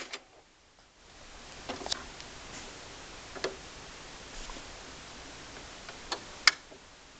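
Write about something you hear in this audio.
A vinyl record spins on a turntable with soft hiss and occasional crackling pops.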